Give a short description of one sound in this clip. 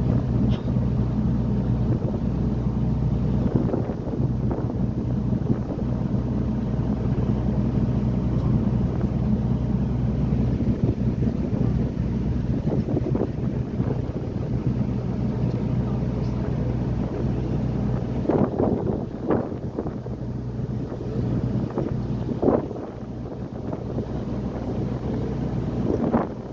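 A boat engine hums low and steady throughout.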